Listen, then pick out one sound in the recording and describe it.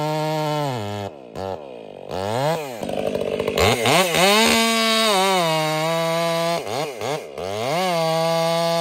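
A chainsaw idles and sputters between cuts.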